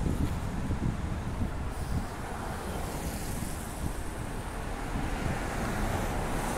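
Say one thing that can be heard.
Cars drive past on a nearby road with a steady tyre hiss.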